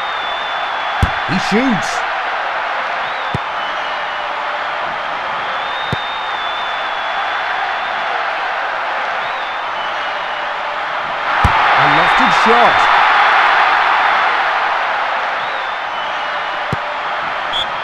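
A football is kicked with short dull thuds.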